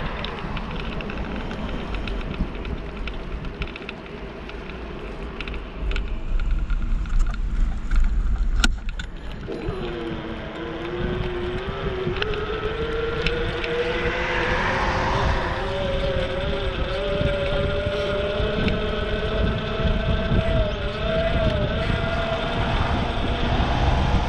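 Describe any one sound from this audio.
Bicycle tyres roll over a paved path.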